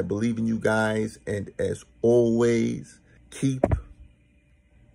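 A young man talks animatedly, close by.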